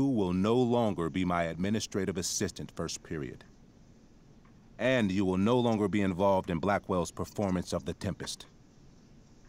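A man speaks sternly and calmly.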